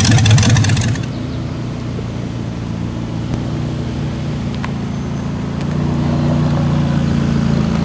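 A sports car's engine hums and grows louder as it approaches.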